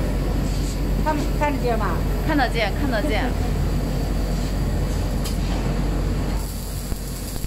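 A spray gun hisses steadily.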